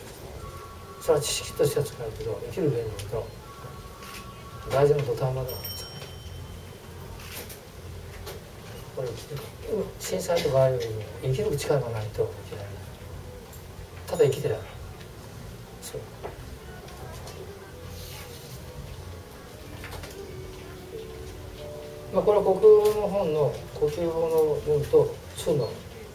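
An elderly man speaks calmly in short phrases through a microphone, with pauses between them.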